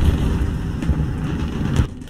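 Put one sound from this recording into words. Fire roars on a burning tank.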